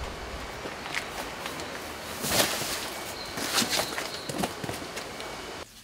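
Cardboard boxes thump and scrape.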